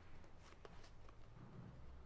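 Playing cards rustle as they are fanned in a hand.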